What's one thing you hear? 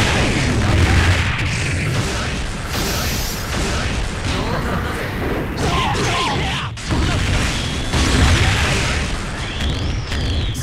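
Punches and kicks land with rapid, heavy thuds.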